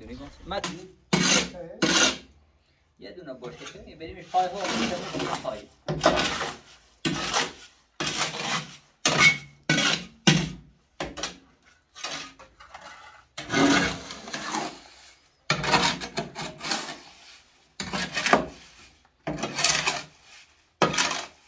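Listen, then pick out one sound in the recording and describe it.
A shovel scrapes and scoops wet mortar in a metal wheelbarrow.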